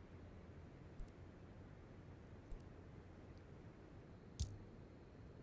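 Short electronic menu clicks sound as options switch.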